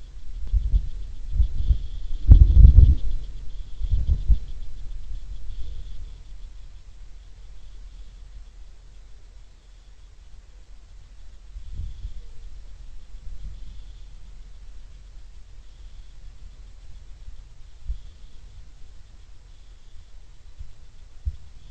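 Wind gusts rumble against the microphone outdoors.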